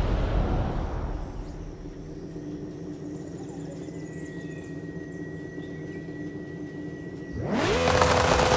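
A sports car engine idles with a low rumble.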